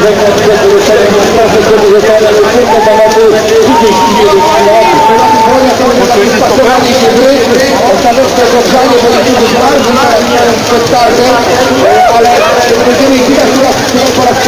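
A large crowd chatters and calls out loudly outdoors.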